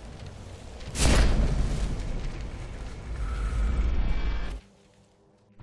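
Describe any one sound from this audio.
A magical whoosh bursts out and swirls with a deep rumble.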